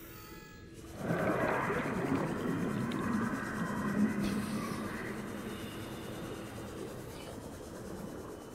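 A handheld scanner hums and buzzes steadily.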